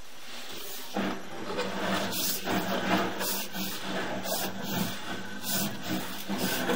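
A probe scrapes and rubs along the inside of a pipe.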